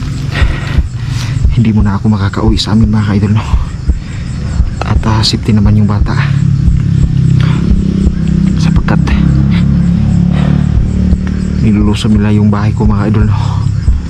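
A young man speaks in a hushed voice close to the microphone.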